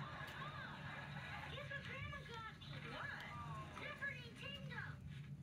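A woman talks with animation, heard through a television loudspeaker in a room.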